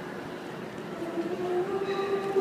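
A group of young women begins singing together in harmony.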